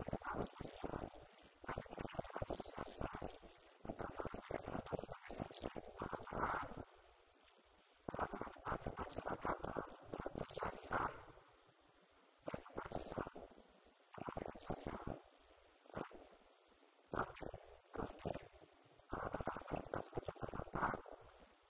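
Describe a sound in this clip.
A man speaks with animation through a microphone and loudspeaker in an echoing hall.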